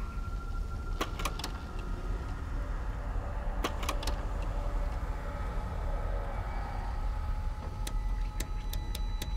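Soft interface clicks sound as menu options are selected.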